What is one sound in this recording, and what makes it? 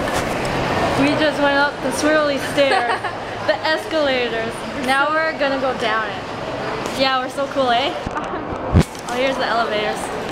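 A young woman talks cheerfully and close up.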